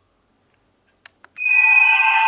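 A button on a toy clicks.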